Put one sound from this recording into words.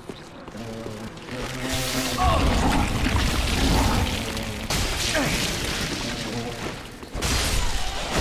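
A sword slashes and strikes a creature with heavy, wet thuds.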